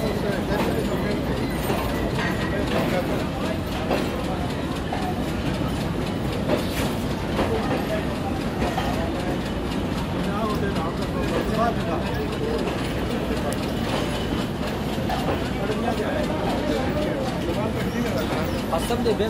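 A train rolls slowly past with a steady low rumble.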